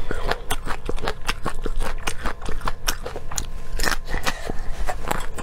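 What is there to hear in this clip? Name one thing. Sticky lip smacks pop sharply and often.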